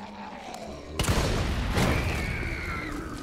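A fiery explosion bursts with a loud boom.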